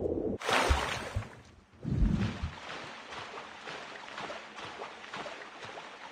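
Water splashes and churns as a swimmer moves through it.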